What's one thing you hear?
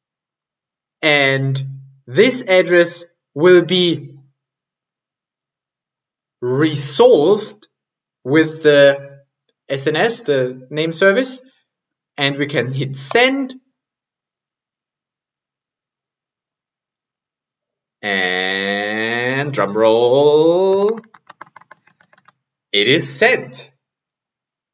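A man speaks calmly into a nearby microphone, in short phrases with pauses.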